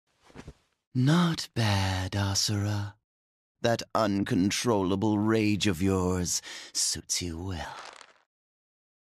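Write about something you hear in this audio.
A man speaks slowly in a deep, calm, mocking voice.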